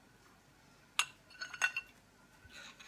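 A metal spatula scrapes and clinks against a frying pan.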